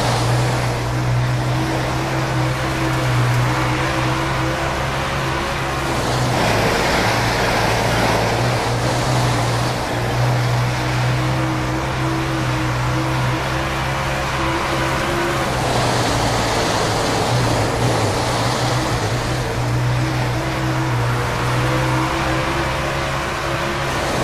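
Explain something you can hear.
A race car engine roars steadily, rising and falling as it speeds up and slows down.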